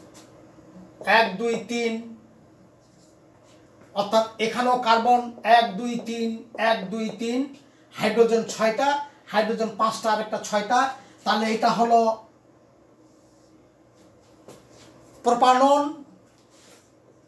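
A middle-aged man speaks calmly and clearly, explaining.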